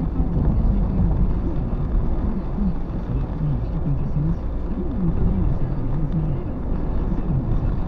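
Tyres hiss steadily on a wet road inside a moving car.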